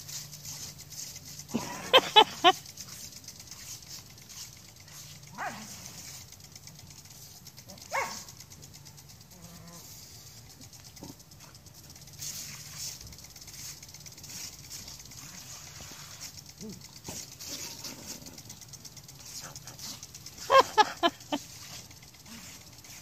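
A lawn sprinkler hisses as it sprays water in steady bursts.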